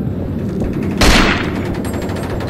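A rifle fires a loud shot in an echoing room.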